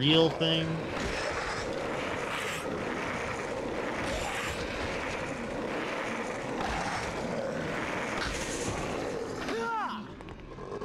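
Skateboard wheels roll steadily over a hard floor.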